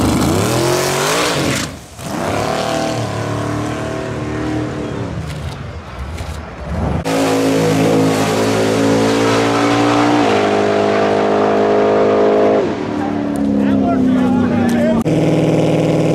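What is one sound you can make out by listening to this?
A turbocharged V8 drag car accelerates hard down a strip.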